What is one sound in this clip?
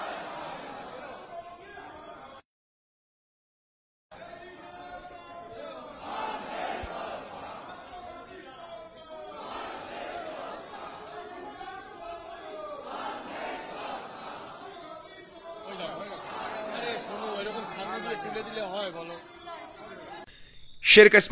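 A crowd of men and women chant slogans loudly outdoors.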